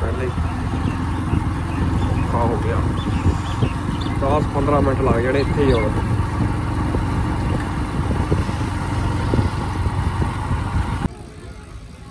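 A motorcycle engine runs steadily while riding.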